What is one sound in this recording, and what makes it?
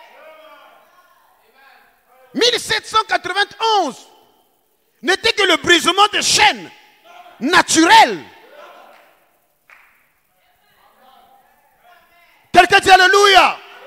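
A man preaches with animation into a microphone, in short loud bursts with pauses, in an echoing hall.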